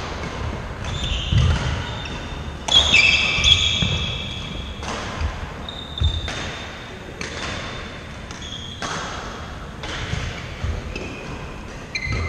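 Trainers squeak sharply on a hard floor.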